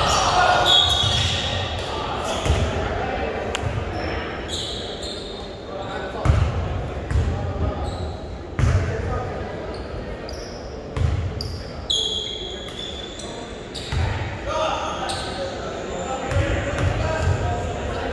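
A basketball bounces repeatedly on a wooden floor in a large echoing gym.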